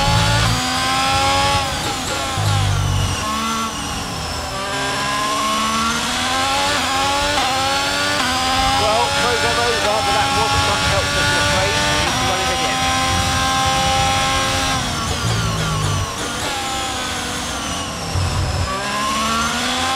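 A Formula One car's hybrid V6 engine drops in pitch as it downshifts under braking.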